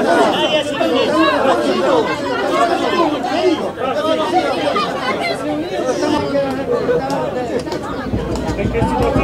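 A crowd of men and women shout and talk over one another close by.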